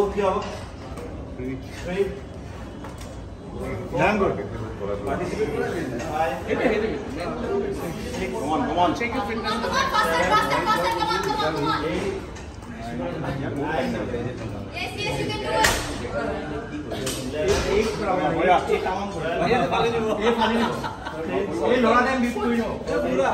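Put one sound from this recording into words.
A group of men and women nearby talk and cheer with animation.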